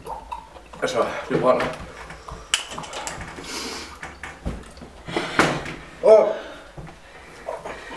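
A young man groans and exclaims loudly close by.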